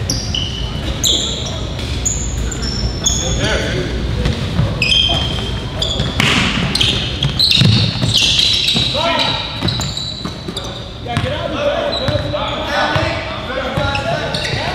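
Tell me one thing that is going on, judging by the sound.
Sneakers squeak sharply on a hard floor.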